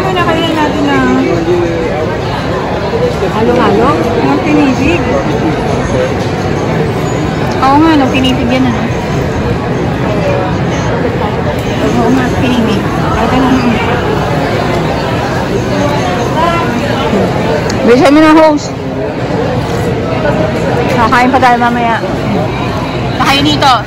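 Many people chatter in the background of a busy, echoing room.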